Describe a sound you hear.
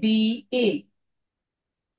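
A woman speaks briefly and clearly.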